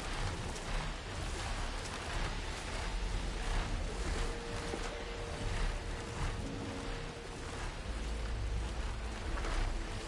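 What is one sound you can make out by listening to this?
Wind rushes past during flight.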